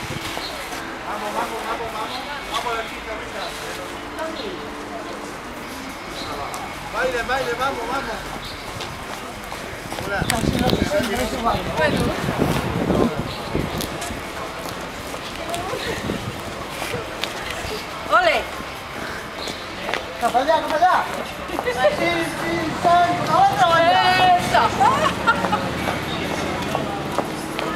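Several women chatter and laugh nearby, outdoors.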